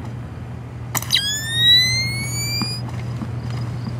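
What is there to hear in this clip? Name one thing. A high electronic whine rises sharply as night-vision goggles switch on.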